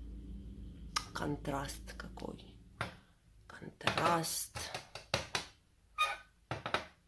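A metal cup holder is set down on glass with clinks and knocks.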